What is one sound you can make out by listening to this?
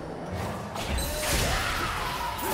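A large magical blast bursts with a loud whoosh.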